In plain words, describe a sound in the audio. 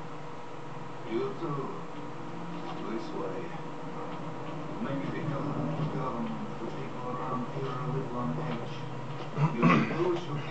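An elderly man speaks slowly in a low, rough voice.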